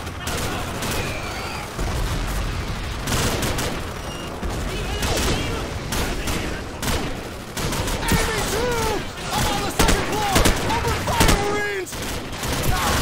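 A rifle fires sharp bursts of shots.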